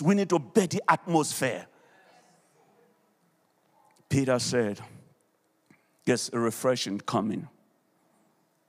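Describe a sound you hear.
An elderly man speaks with animation into a microphone, heard through loudspeakers, pausing between phrases.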